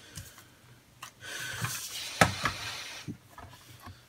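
Paper rustles and slides on a desk.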